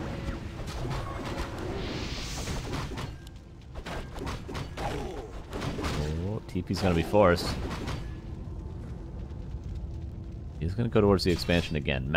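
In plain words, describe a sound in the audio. Swords clash and spells burst in a busy battle.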